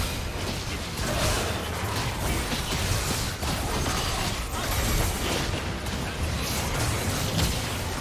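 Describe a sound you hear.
Video game spell effects crackle and whoosh.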